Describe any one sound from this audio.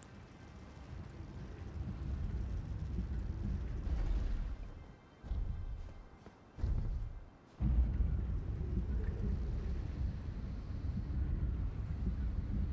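Wind rumbles and gusts loudly outdoors.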